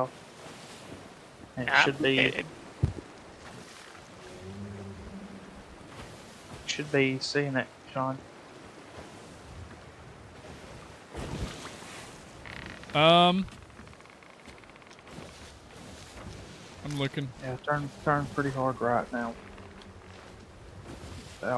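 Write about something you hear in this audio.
Waves wash and churn on the open sea.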